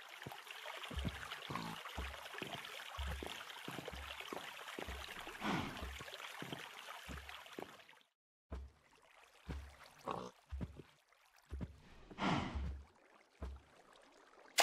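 Footsteps thud softly on grass.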